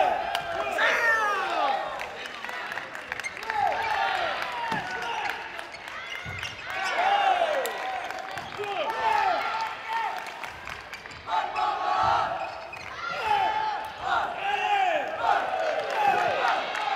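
Sports shoes squeak sharply and often on a hard floor in a large echoing hall.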